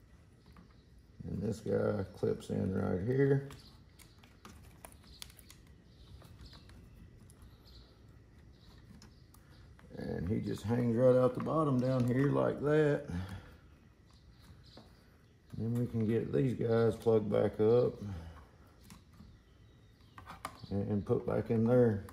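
Plastic parts click and rattle as hands handle wiring.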